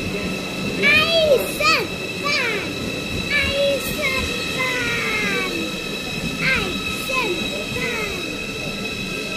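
Train brakes squeal in short bursts.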